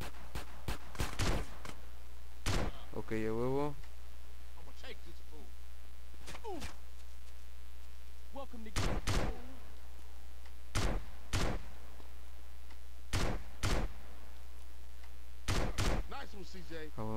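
Gunshots crack sharply, one after another.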